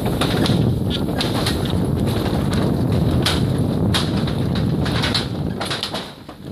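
A car rumbles slowly over wooden bridge planks, the boards clattering and knocking.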